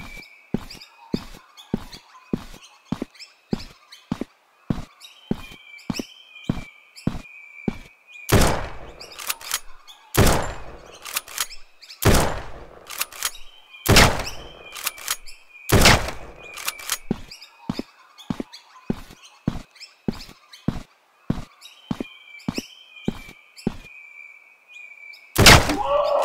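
Footsteps tread quickly and evenly over grass.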